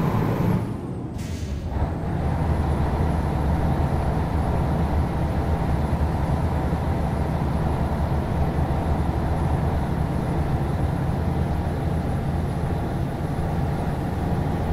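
A truck engine drones low and steady as it drives along.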